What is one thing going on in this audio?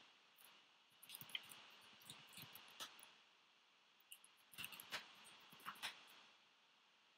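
Computer keys click in short bursts of typing.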